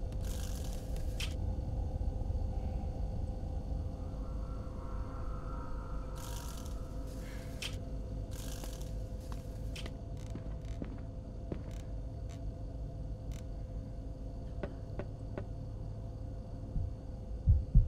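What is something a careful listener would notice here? A young man shushes softly into a close microphone.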